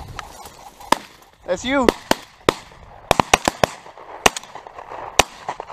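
A shotgun fires loudly outdoors.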